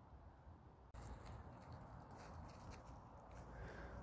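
A dog's paws rustle through dry leaves.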